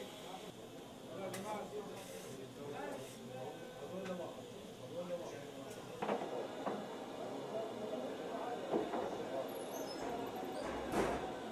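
A crowd of people murmurs and chatters nearby.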